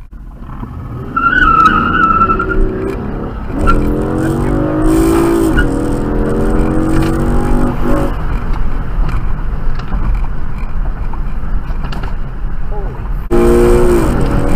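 A sports car engine revs hard and roars nearby, rising and falling in pitch.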